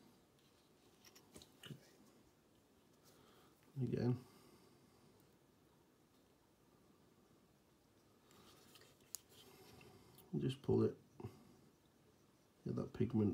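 A small plastic model knocks and bumps softly as it is turned in the hand.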